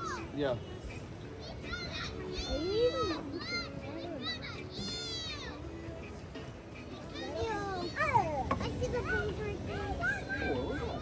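Young girls talk and squeal excitedly nearby.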